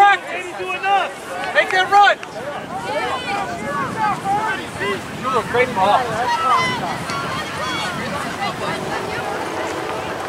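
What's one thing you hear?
Young girls shout and call out to each other across an open outdoor field.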